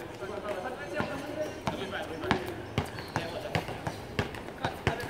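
A basketball bounces on an outdoor court.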